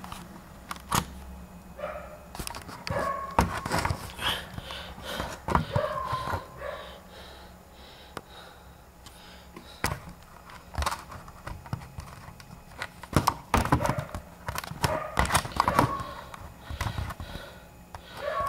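Footsteps scuff and tap slowly across a hard, gritty floor.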